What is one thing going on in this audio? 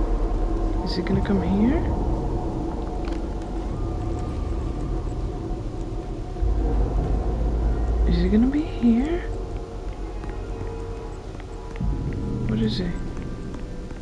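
A woman speaks briefly and quietly into a nearby microphone.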